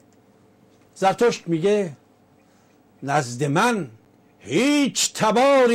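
An elderly man speaks calmly into a microphone, in short bursts.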